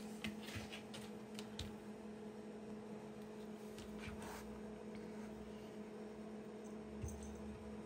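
A dog's claws click and tap on a hard floor.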